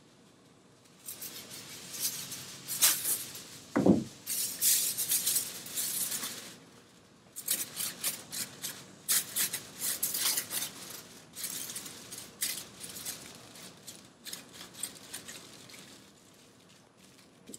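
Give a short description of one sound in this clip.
Hands scrape and rub on a car roof.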